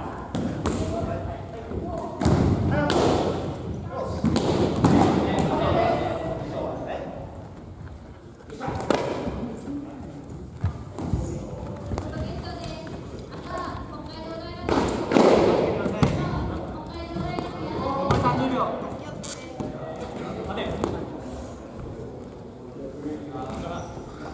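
Sneakers squeak and feet thump on a wooden floor.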